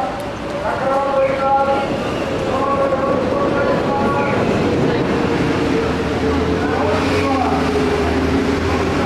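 A crowd chatters in an echoing indoor hall.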